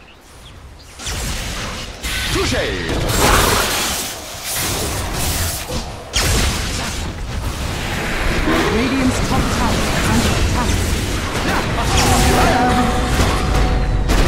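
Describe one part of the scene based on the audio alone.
Game weapons clash and thud in quick hits.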